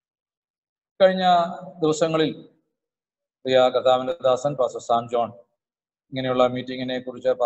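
A middle-aged man speaks calmly into a microphone over an online call, with pauses.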